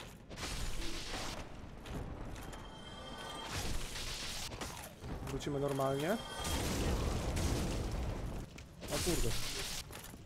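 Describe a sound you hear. A sword strikes with sharp clashes.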